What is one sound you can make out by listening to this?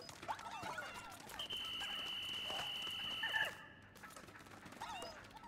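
Small creatures chirp in high, squeaky voices.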